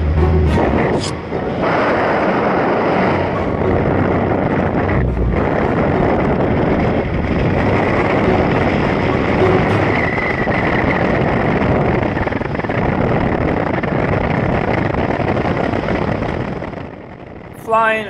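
Wind rushes loudly past a paraglider in flight.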